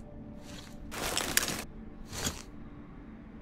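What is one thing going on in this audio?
A paper map rustles as it is unfolded.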